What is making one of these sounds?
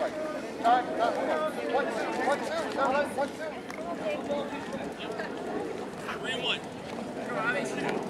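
Several young men chatter and call out in the distance.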